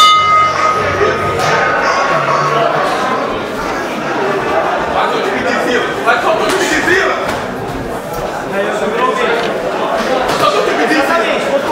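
Boxing gloves thud and slap against each other.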